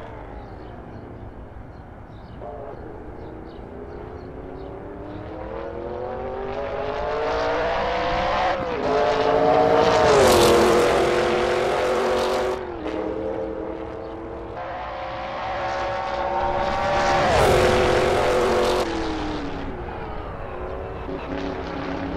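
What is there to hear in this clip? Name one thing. A racing car engine roars past at high speed, rising and falling in pitch.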